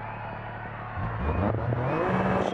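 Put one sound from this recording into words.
A rally car engine revs up sharply.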